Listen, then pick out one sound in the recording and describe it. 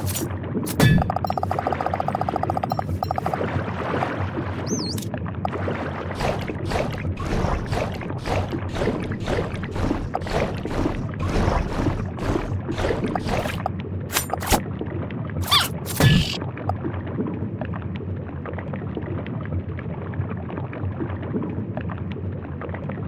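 A diver swims through water with a muffled, rushing underwater sound.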